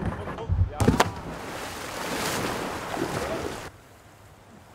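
Whitewater rushes and churns.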